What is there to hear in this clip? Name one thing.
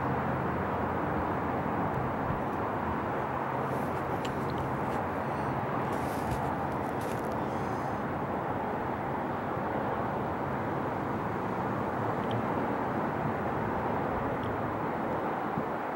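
Road noise rumbles inside a moving car.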